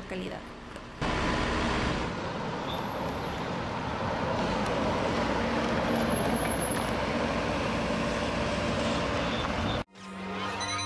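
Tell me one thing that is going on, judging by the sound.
A car drives past on a road outdoors.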